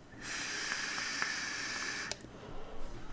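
A vape device hisses as a man draws on it.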